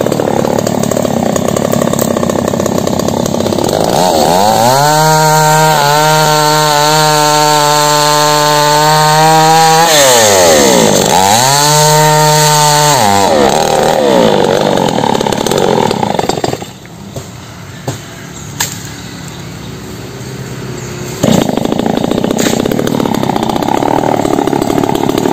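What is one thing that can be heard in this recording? A chainsaw engine roars close by, revving up and down and dropping to a quiet idle.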